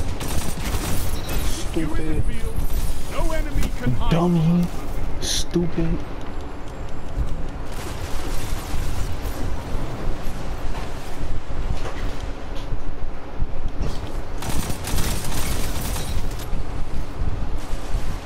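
Rapid gunfire blasts and cracks.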